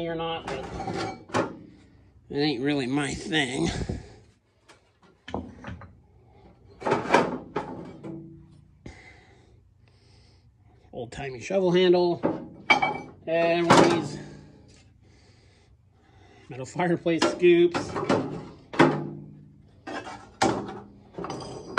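Metal tools clank against a metal box as they are lifted and set down.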